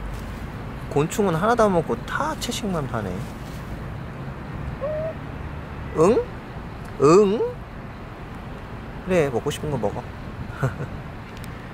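A chicken clucks softly nearby.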